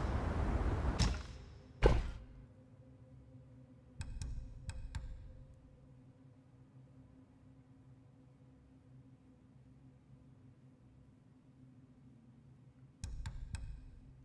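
Short soft menu clicks sound in quick bursts.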